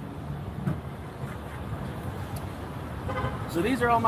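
A car's tailgate latch clicks open.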